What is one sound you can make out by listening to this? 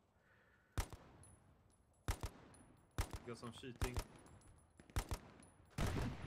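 Rifle shots ring out one at a time, with short echoes.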